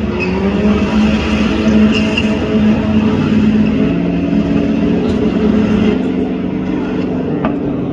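A car engine roars loudly in the distance.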